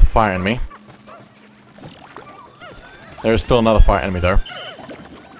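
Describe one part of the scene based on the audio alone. Small cartoon creatures cry out in squeaky, sing-song voices.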